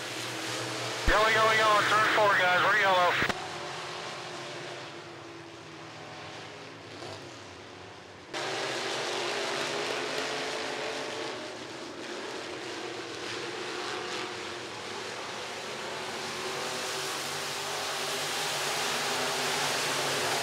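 Race car engines roar around a dirt track.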